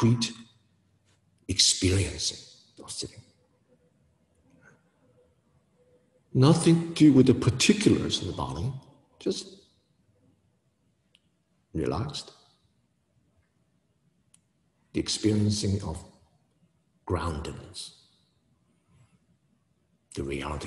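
A man speaks calmly and slowly into a nearby microphone, with pauses.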